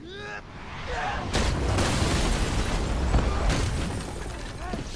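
A loud whoosh and rumble of an explosion.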